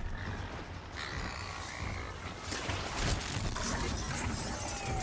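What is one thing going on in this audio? A mechanical beast growls and whirs close by.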